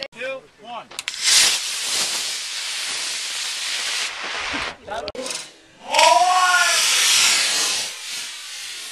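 A model rocket motor roars with a loud rushing hiss.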